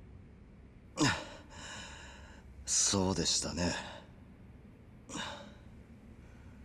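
A younger man speaks tensely.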